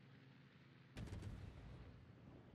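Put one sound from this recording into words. Heavy guns fire in a loud booming salvo.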